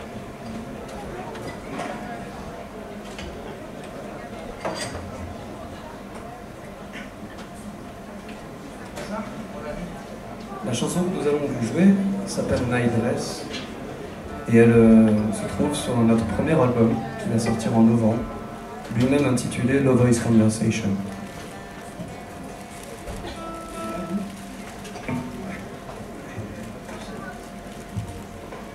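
A violin plays a slow melody.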